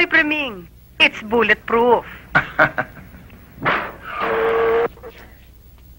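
A middle-aged man laughs heartily, close by.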